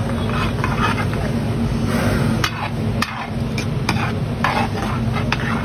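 A metal ladle scrapes and clinks against a griddle.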